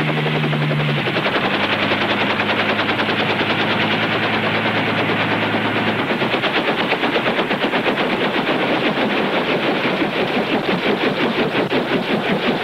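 A helicopter rotor chops with a rapid, steady thudding.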